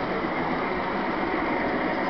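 A model train rumbles along its track.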